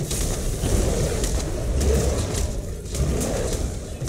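Fiery blasts explode and crackle.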